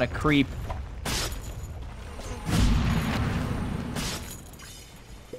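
Fantasy battle sound effects whoosh and clash.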